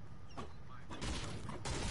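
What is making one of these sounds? A pickaxe strikes wood with a sharp crack.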